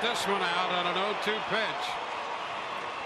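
A crowd cheers in a large echoing stadium.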